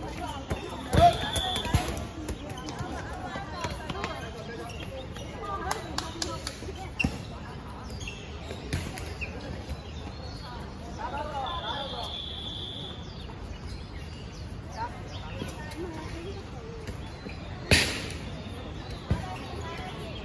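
Basketballs bounce on an outdoor court.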